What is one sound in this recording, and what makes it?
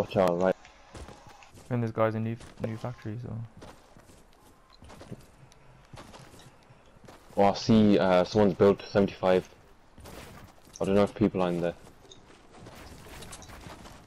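Footsteps patter quickly on the ground in a video game.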